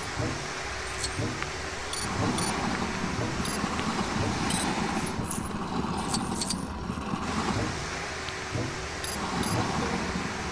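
Coins jingle as they are collected.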